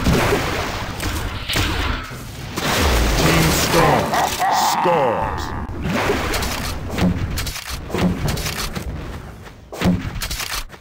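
A weapon fires repeated loud blasts.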